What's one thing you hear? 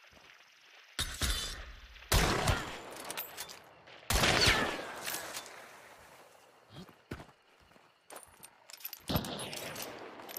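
A shotgun fires with loud, booming blasts.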